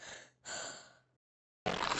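A cartoon cat cries out briefly in a high, squeaky voice.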